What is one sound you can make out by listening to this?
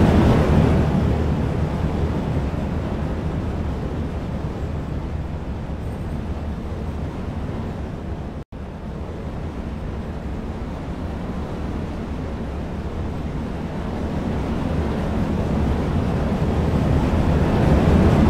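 A roller coaster train rumbles along its track.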